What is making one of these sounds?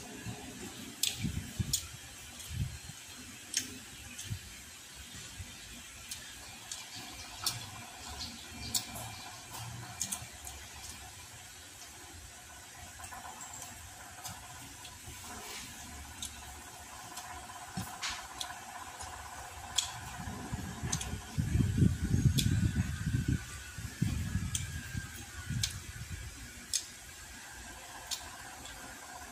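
A man chews food loudly and smacks his lips close by.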